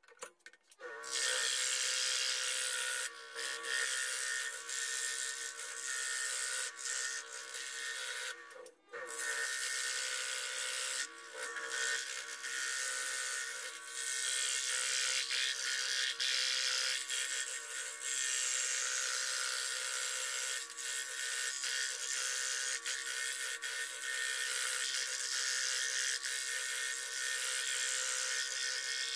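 A scroll saw blade buzzes as it cuts through thin sheet material.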